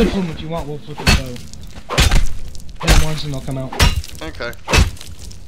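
A pick strikes a carcass with repeated heavy thuds.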